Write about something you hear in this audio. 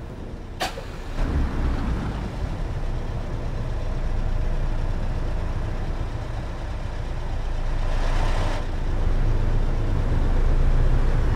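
A bus engine rumbles low as it pulls away.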